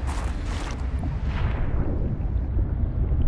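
Water splashes as a diver plunges in.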